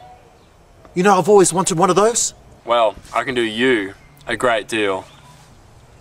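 A middle-aged man answers forcefully close by.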